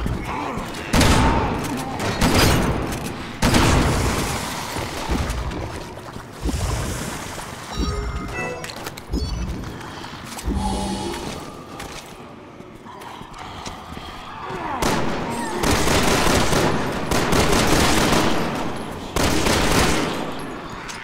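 Gunshots fire loudly, echoing in a large space.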